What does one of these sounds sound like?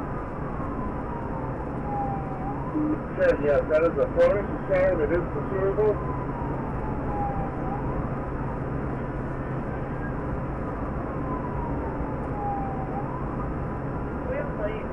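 A car's tyres and engine hum steadily on the road.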